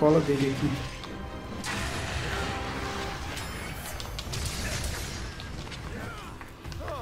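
Loud crashing battle effects rumble and hiss.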